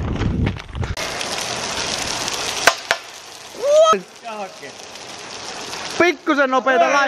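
Rain pours down on wet pavement outdoors.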